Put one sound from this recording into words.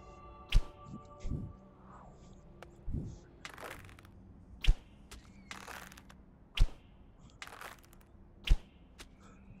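A bowstring snaps sharply as an arrow is loosed.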